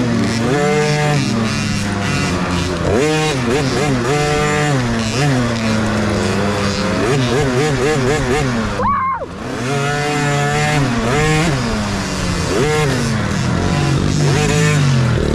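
Another dirt bike engine buzzes just ahead.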